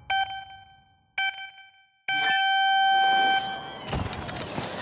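Two short countdown beeps sound, followed by a longer start tone.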